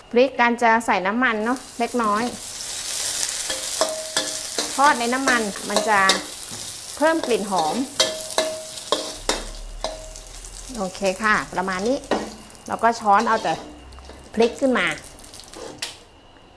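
Dried chillies sizzle softly in a hot wok.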